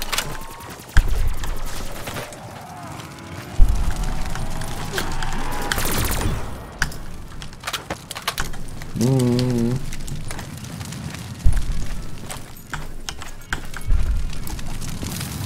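Explosions boom with deep thuds.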